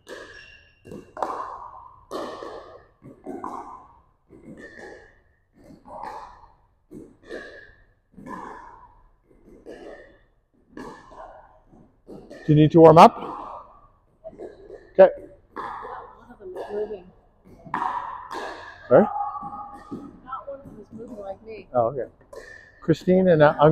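Paddles strike a plastic ball with sharp pops in an echoing hall.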